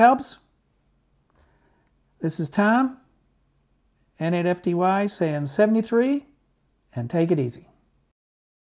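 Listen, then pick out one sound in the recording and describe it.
An elderly man speaks calmly and closely into a microphone, in short phrases.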